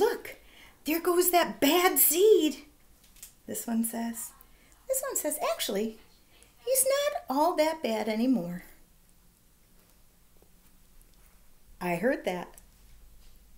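A middle-aged woman reads aloud expressively, close to the microphone.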